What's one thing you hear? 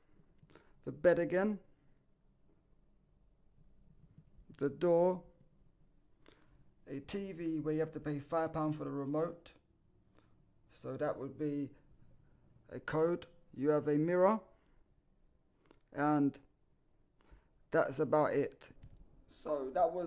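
A young man talks calmly close by, in short bursts with pauses.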